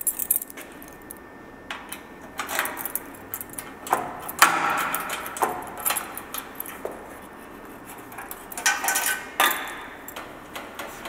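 Metal keys jingle and scrape in a lock.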